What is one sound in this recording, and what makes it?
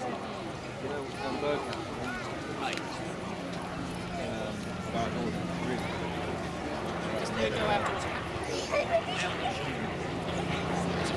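A propeller plane's engine drones steadily overhead.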